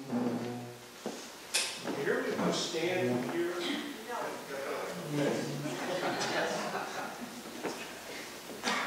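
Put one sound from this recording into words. A man speaks with animation into a microphone in a room with some echo.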